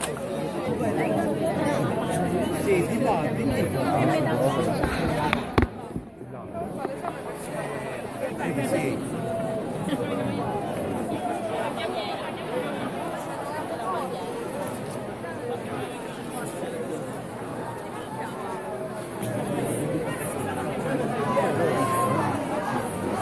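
A large crowd of men and women chatters and murmurs all around, outdoors.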